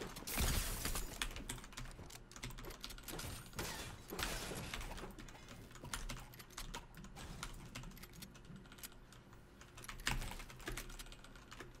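Game building pieces click and thud rapidly into place.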